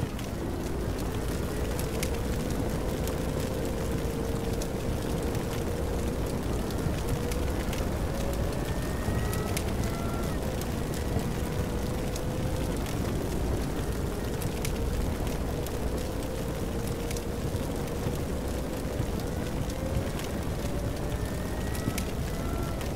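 A tank engine drones steadily as the tank drives, its pitch rising and falling.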